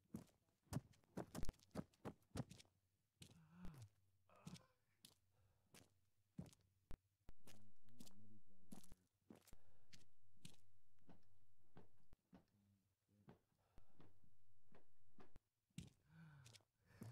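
Footsteps tap on hard floors at a quick pace.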